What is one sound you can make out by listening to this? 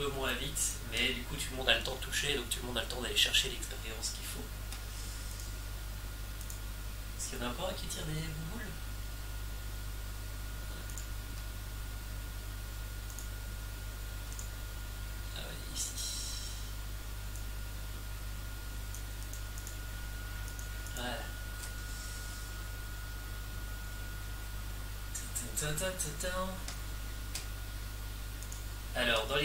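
A young man speaks casually into a nearby microphone.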